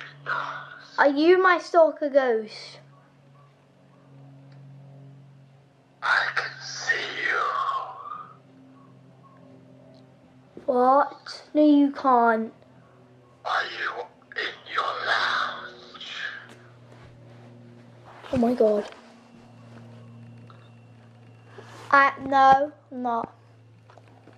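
A young boy talks with animation close by, in bursts with pauses.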